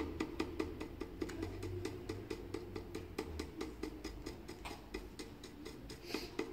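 A stiff brush taps rapidly against a wooden box.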